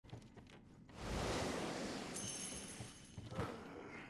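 A magical shimmering whoosh swells up with high chiming tones.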